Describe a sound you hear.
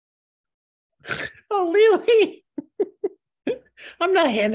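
A woman laughs.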